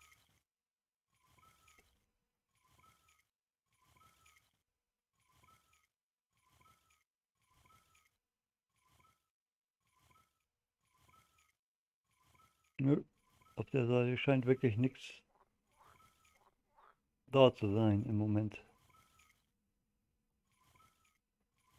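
A fishing reel clicks softly as its line is wound in.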